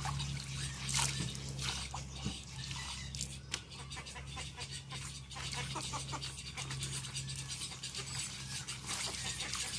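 Wet cloth drips as it is wrung out.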